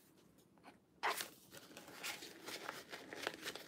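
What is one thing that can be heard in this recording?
A plastic sheet crackles as it is peeled and bent.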